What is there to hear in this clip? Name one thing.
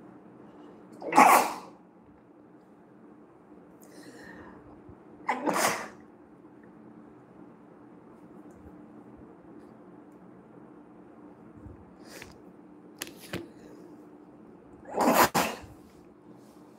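A woman sneezes loudly several times.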